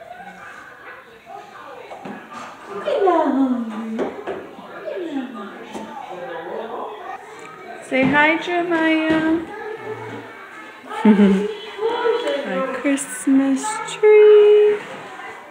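A teenage boy talks and calls out loudly close by.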